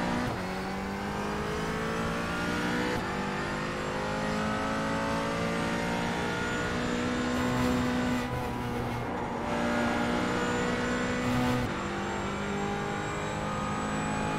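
A race car engine roars and whines as it revs up and down through the gears.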